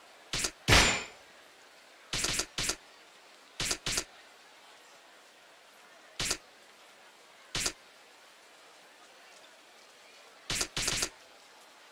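Short electronic menu blips sound, one or two at a time.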